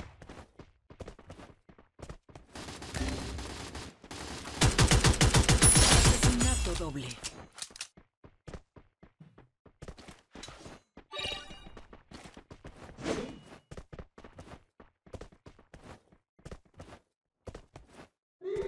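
Footsteps patter quickly on the ground.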